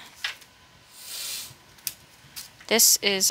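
Paper banknotes rustle as they are flipped through by hand.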